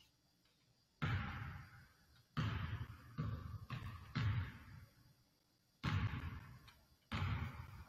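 A basketball bounces on a hardwood court in a large echoing gym.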